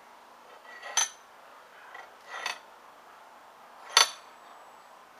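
A metal clamp clicks and clanks.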